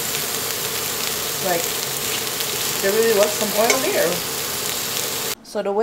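A metal fork scrapes and taps against a frying pan.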